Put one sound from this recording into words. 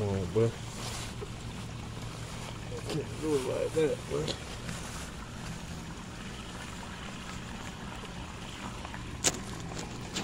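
Nylon fabric rustles as it is handled up close.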